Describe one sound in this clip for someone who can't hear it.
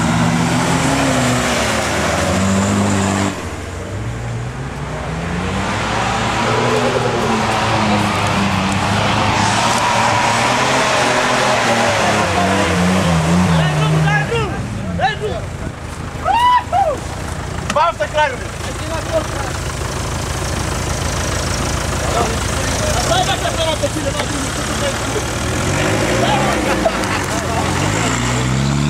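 An off-road vehicle's engine roars and revs loudly outdoors.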